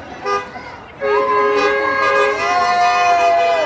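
A car horn blares loudly and steadily.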